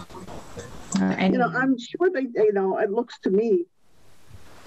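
An elderly woman speaks over an online call.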